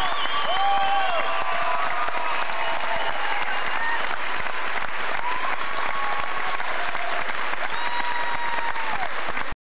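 People in the audience whistle and cheer.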